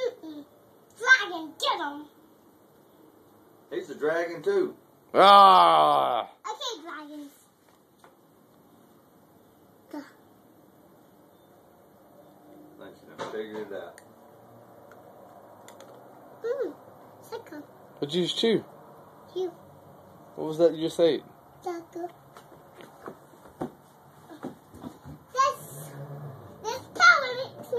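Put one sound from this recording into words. A little girl talks and squeals close by.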